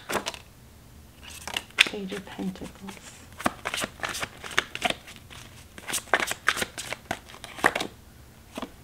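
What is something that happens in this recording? Playing cards riffle and flick as they are shuffled close by.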